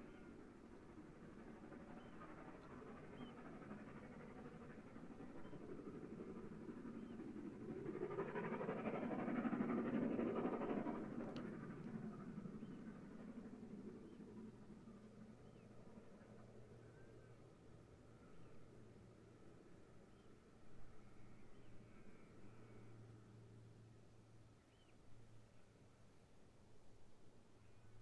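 A steam locomotive chuffs and rumbles along the track nearby.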